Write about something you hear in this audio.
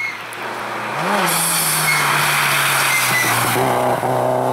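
Tyres spray snow and gravel as a car passes.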